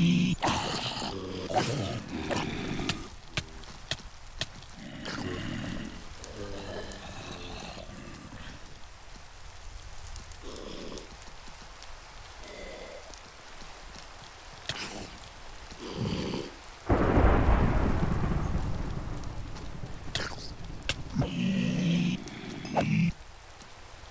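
Zombies groan low and hoarsely.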